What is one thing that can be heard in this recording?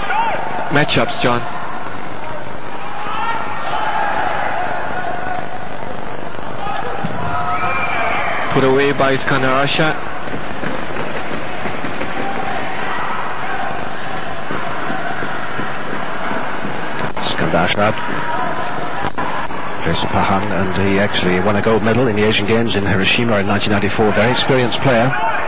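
A large crowd cheers and murmurs in an echoing hall.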